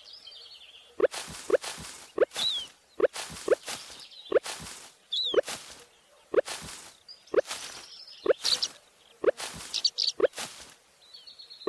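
Short game chimes and pops sound quickly one after another as crops are picked.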